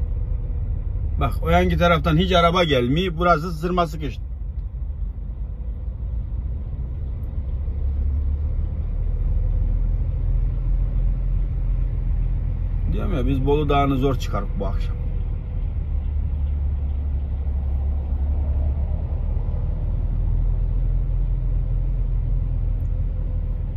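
Tyres hum and roar on the road.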